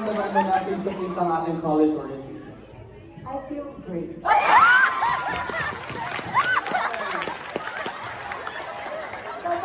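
A large crowd of young people chatters loudly in an echoing hall.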